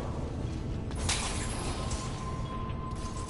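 Glowing orbs whoosh in with a soft ringing chime.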